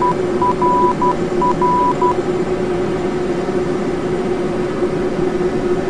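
Jet engines hum steadily at idle.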